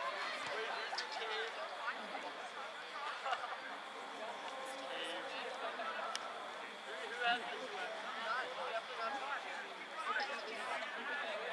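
Young men and spectators shout and call out across an open field outdoors.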